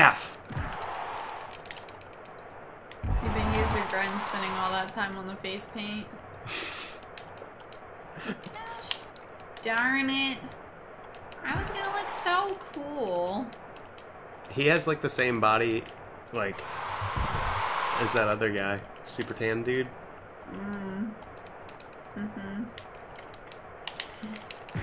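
A young woman talks and laughs through a microphone.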